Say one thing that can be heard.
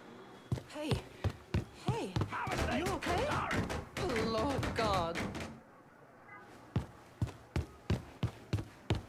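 Footsteps fall on a wooden floor.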